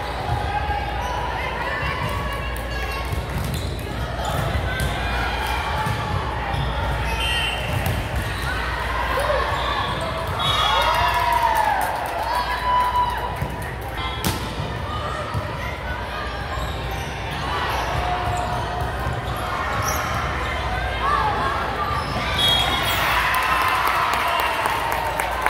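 A volleyball thuds off hands and arms.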